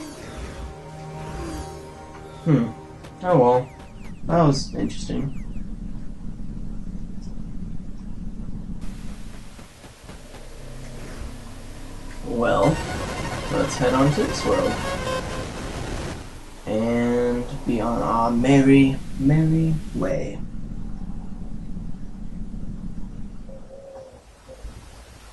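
Soft electronic music plays throughout.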